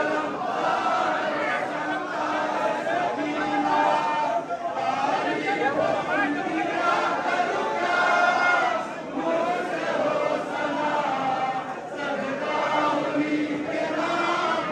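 A large crowd of men chants loudly together in an echoing hall.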